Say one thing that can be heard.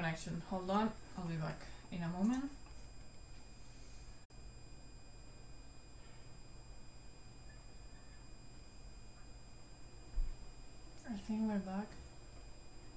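A young woman talks casually into a nearby microphone, in short bursts with pauses.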